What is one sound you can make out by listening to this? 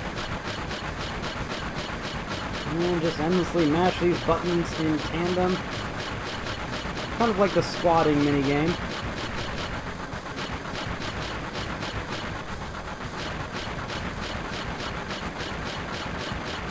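A steam locomotive chugs with a fast, steady rhythm.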